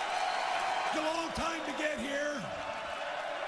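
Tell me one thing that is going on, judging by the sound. A man speaks through a microphone over an echoing arena.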